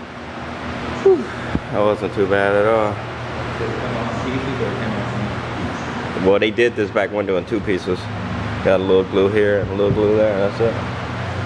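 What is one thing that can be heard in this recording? A man talks calmly close by, explaining.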